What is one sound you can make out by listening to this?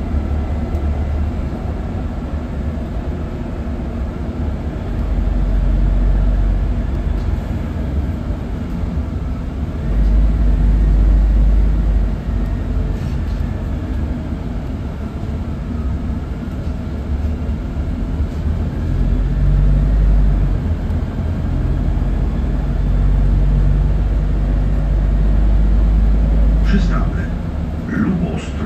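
The bus rattles and hums over the road.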